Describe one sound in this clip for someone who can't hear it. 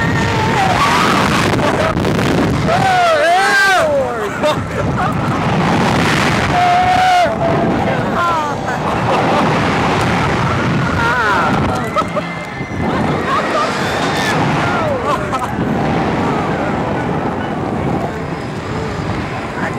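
Rushing wind roars past loudly.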